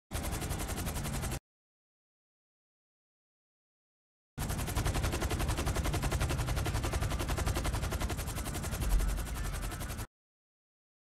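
A helicopter's rotor blades thump rapidly and steadily.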